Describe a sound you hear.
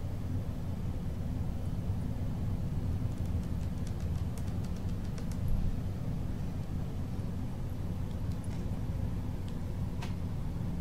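Flames roar steadily from a burning car.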